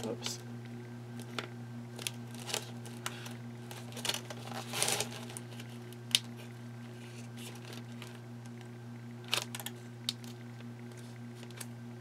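Scissors snip through thick card.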